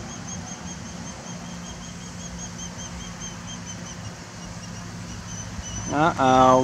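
A bird of prey calls in short, repeated high chirps.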